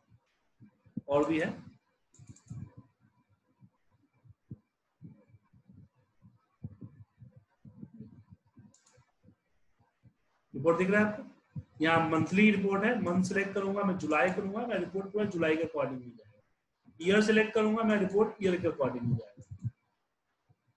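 A man speaks calmly and clearly into a nearby microphone, in short bursts with pauses.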